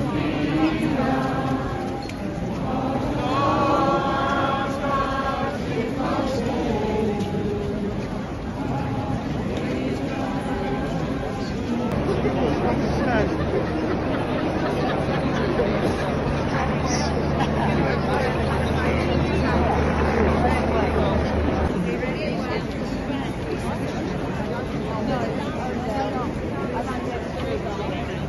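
Many people talk loudly in a dense crowd nearby.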